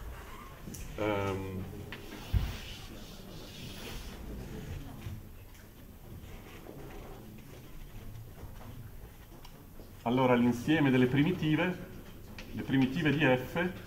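A man speaks in a lecture, fairly close, in bursts.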